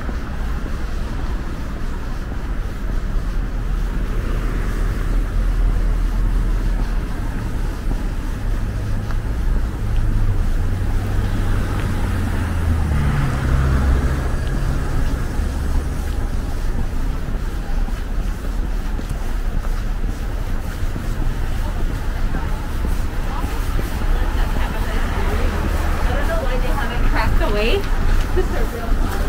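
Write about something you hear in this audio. Footsteps crunch on snowy pavement.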